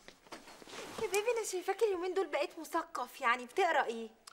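A young woman speaks with animation nearby.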